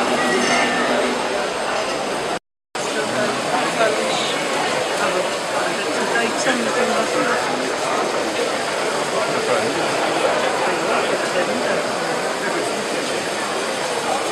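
A wood lathe hums as it spins.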